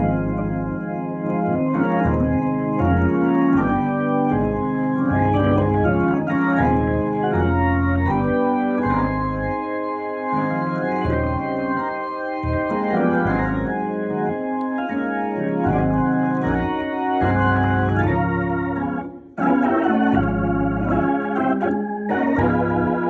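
Organ bass pedals play low notes.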